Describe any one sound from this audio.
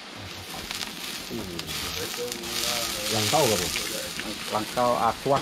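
Liquid pours into a hot wok and hisses.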